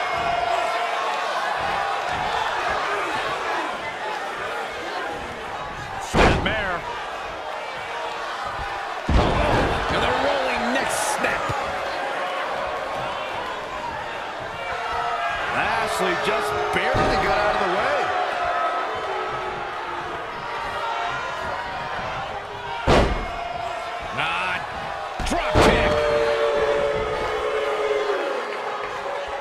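A large crowd cheers and chants throughout in a big echoing arena.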